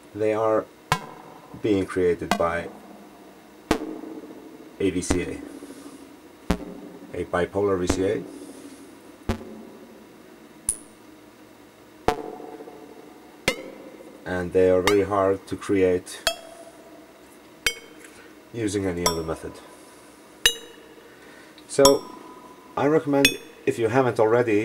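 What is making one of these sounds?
Sharp electronic clicks tick at uneven intervals.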